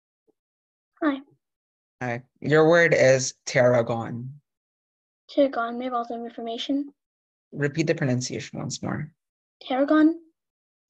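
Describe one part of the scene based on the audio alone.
A boy talks through an online call, in short bursts.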